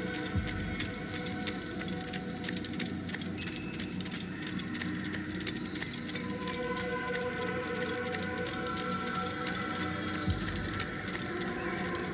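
Footsteps run quickly over stone.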